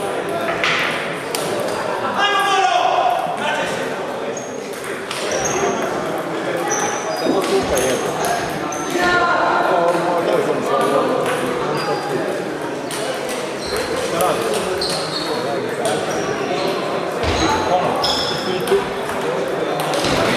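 Table tennis balls click rapidly against paddles and tables in a large echoing hall.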